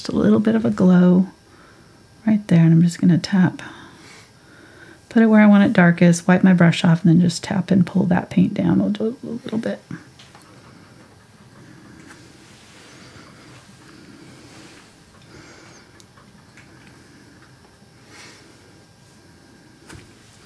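A paintbrush brushes softly over a canvas.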